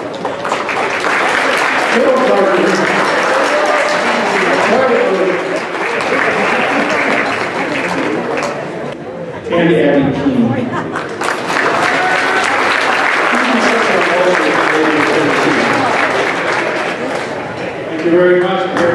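A crowd murmurs in the stands.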